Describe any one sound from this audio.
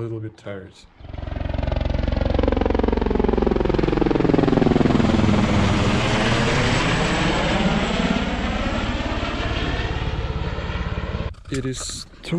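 A helicopter flies low overhead with a loud rotor thudding, its pitch dropping as it passes.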